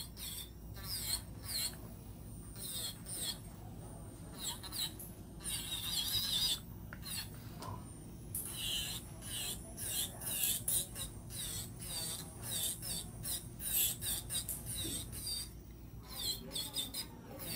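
An electric nail drill whirs and grinds against a nail.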